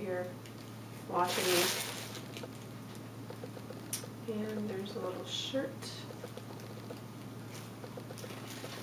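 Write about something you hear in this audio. Tissue paper rustles and crinkles as it is handled.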